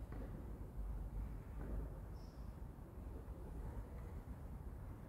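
A string orchestra plays softly in a large echoing hall.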